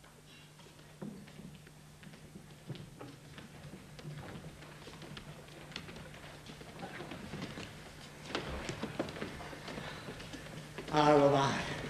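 Dancers' feet tap and stamp on a wooden stage.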